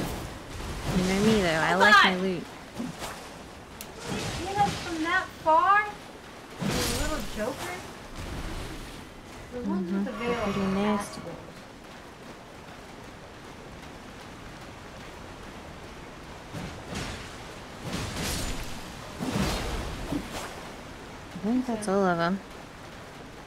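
A creature lets out wavering, howling cries.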